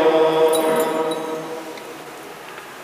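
A man chants into a microphone in a large echoing hall.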